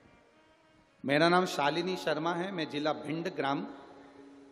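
A man sings loudly through a microphone.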